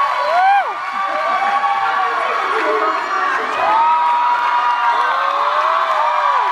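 A woman speaks cheerfully through a microphone in a large hall.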